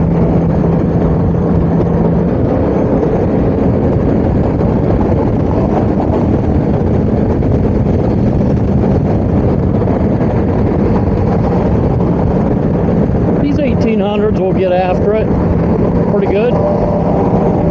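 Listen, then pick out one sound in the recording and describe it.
Wind roars steadily past a fast-moving motorcycle.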